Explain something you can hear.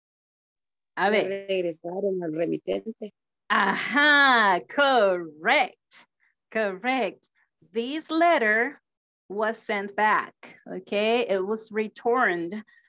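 An elderly woman speaks with animation over an online call.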